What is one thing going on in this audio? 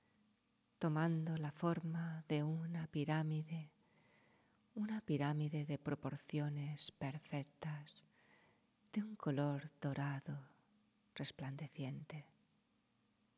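A middle-aged woman speaks calmly into a close microphone.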